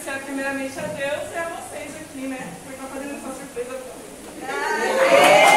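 A woman speaks with animation to a group.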